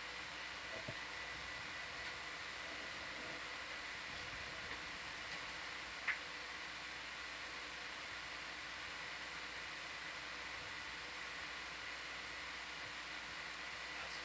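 An underwater vehicle hums steadily.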